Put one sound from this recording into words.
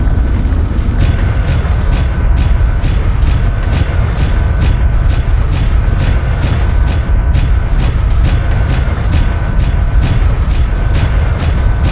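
Heavy metal footsteps clank in a quick, steady rhythm.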